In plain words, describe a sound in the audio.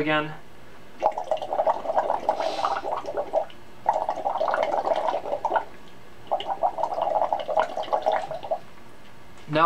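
Drinks are slurped loudly through straws.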